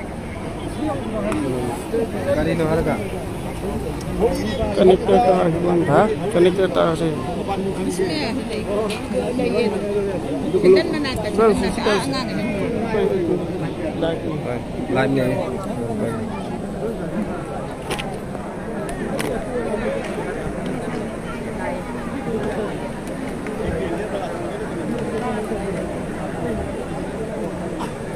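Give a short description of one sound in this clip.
A large crowd of people talks and murmurs outdoors.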